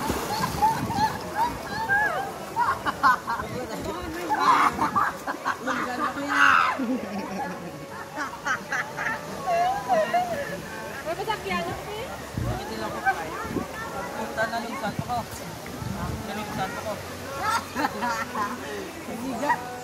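Water splashes as swimmers move in the river.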